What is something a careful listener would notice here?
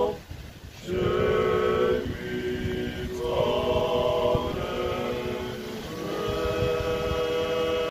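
A group of men sing together in harmony, holding long notes.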